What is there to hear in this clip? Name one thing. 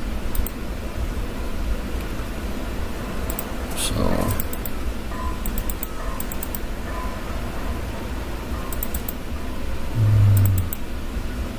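Short bursts of quick, light clicks sound from a game's menus.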